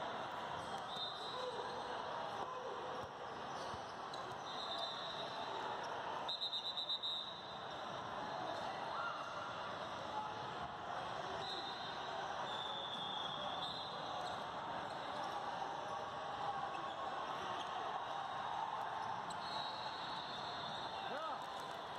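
Sneakers squeak sharply on a court.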